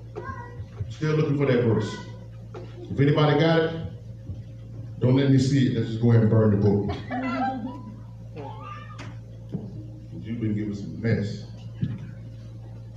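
A man speaks with animation into a microphone, heard over loudspeakers in an echoing hall.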